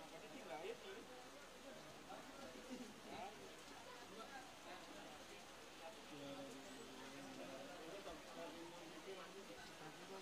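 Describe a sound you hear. A crowd of men talk and murmur close by.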